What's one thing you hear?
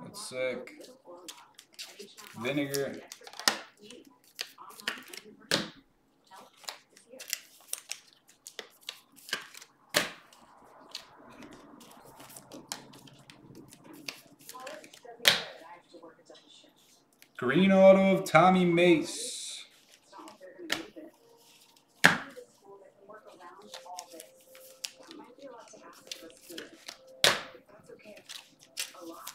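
Trading cards rustle and tap as hands sort through them.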